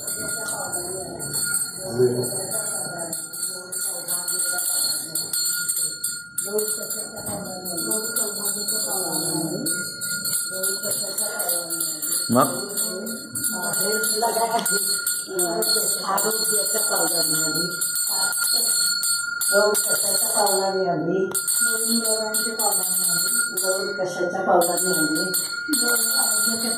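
Adult women sing together close by.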